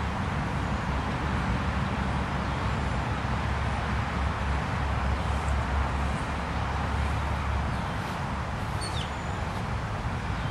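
Wind blows steadily outdoors, rustling tree leaves.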